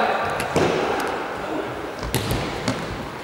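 A ball thuds as a player kicks it.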